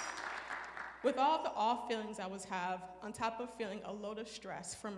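A woman speaks with animation through a microphone in a large echoing hall.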